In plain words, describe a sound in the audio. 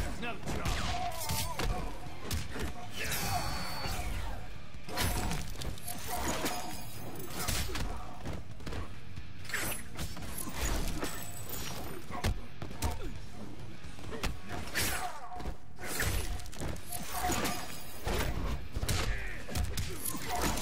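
Punches, kicks and energy blasts from a fighting game crash and whoosh.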